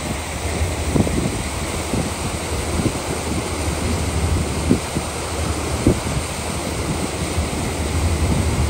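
A boat's wake churns and splashes steadily.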